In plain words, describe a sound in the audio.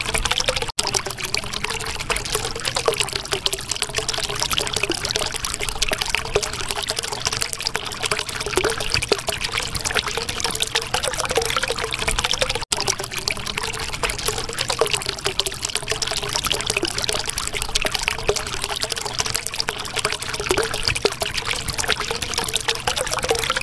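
Air bubbles bubble and gurgle steadily in water.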